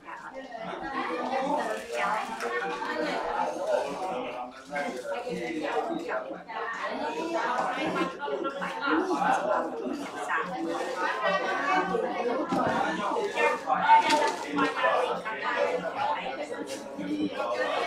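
Several adults chant together in a low murmur nearby.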